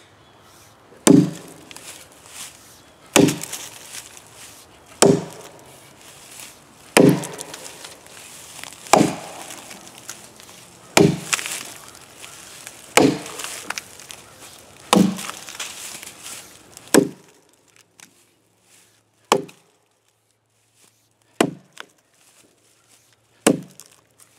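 An axe chops into a log with sharp, regular thuds.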